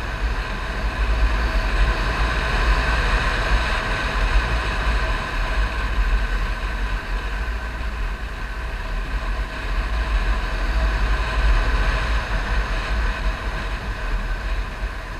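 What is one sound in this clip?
Wind rumbles hard against a microphone.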